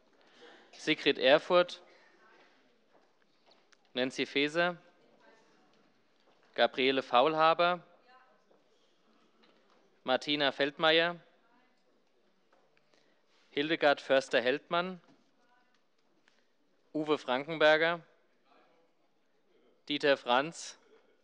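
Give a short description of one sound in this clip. A middle-aged man speaks over a microphone in short bursts with pauses between them.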